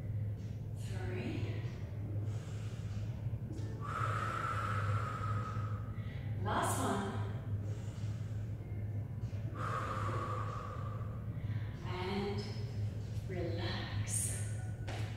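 A woman speaks calmly, giving instructions in an echoing room.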